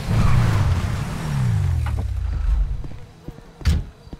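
A truck door opens with a click.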